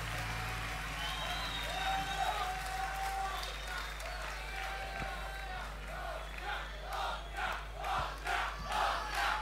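A band plays music live.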